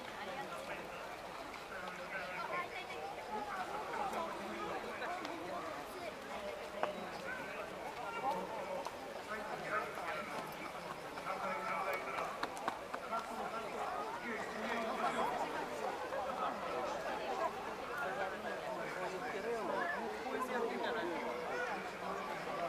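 A crowd of people chatters outdoors at a distance.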